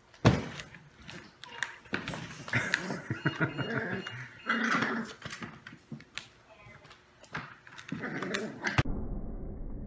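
Puppies squeal and whimper close by.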